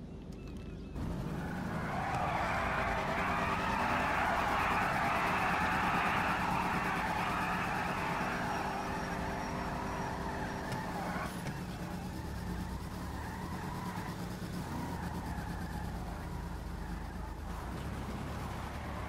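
A car engine revs loudly.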